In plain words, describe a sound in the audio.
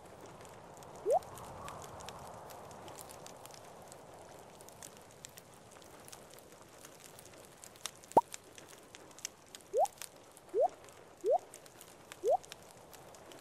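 Short, quick rising pops play as items are picked up and put down.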